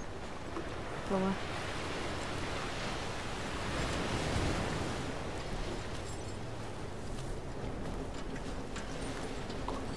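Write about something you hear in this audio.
Wind blows steadily outdoors, swelling and easing.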